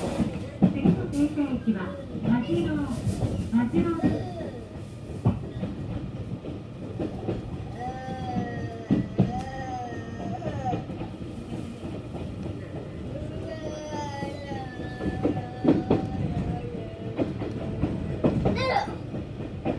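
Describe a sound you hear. A vehicle rumbles steadily as it moves along.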